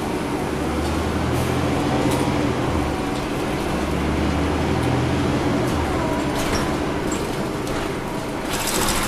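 A bus body rattles and clatters over the road.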